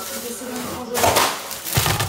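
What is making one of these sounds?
A plastic snack bag crinkles.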